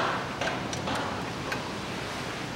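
A metal wrench knocks against engine parts.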